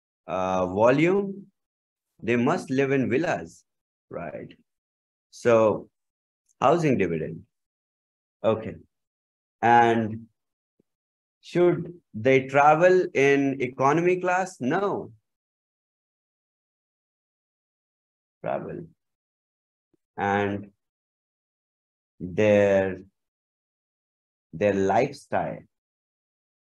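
A young man speaks calmly over an online call, in short phrases with pauses.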